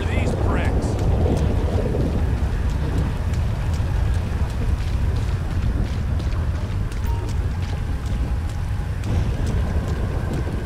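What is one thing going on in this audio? Footsteps crunch slowly over dirt and gravel.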